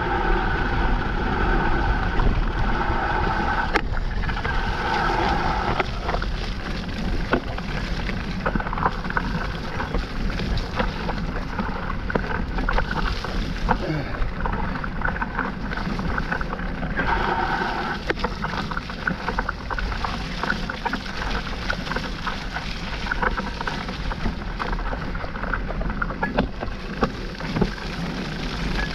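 A bike's frame and chain rattle over bumps.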